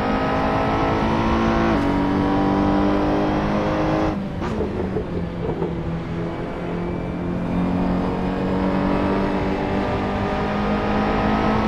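A racing car engine roars at high revs, dropping in pitch at each gear change.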